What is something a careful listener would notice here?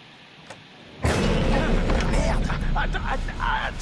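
A loud crash bursts out with heavy rumbling.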